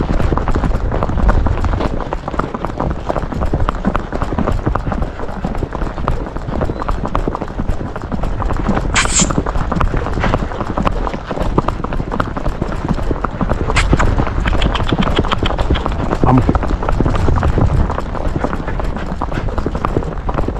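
A horse's hooves clop steadily on pavement.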